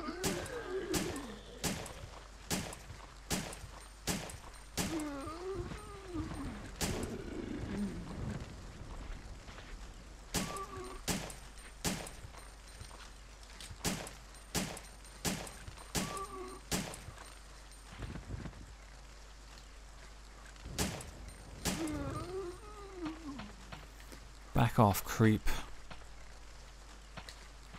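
A handgun fires shot after shot, with sharp cracks that echo briefly.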